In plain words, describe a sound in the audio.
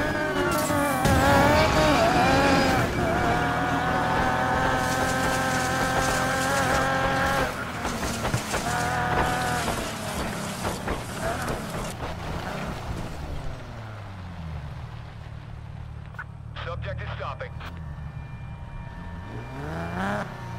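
A sports car engine roars at high revs, then winds down as the car slows.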